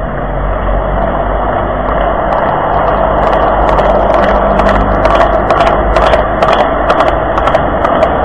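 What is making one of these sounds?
Cars drive past on a street.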